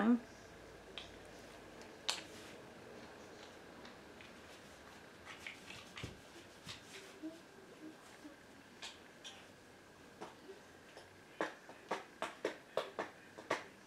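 A makeup brush softly dabs and brushes on skin.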